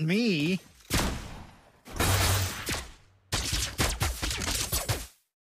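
Game characters clash with crackling, whooshing bursts of magic.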